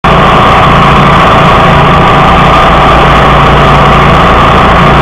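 Grass is cut by a rotating blade, rattling and whirring.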